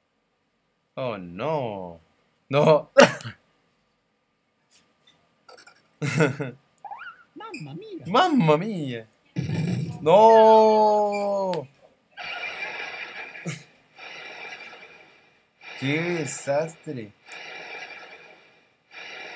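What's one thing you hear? Short cartoonish game sound effects chirp and whoosh.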